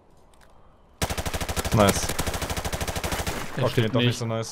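Rapid automatic gunfire rattles in a burst.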